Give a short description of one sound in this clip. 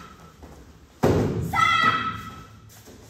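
A body lands with a heavy thud on a mat.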